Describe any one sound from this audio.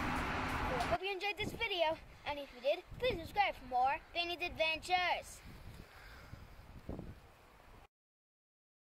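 A young boy speaks calmly, close by.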